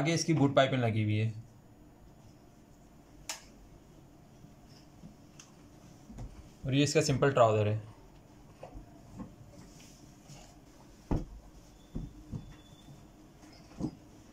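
Cloth rustles softly as hands handle fabric.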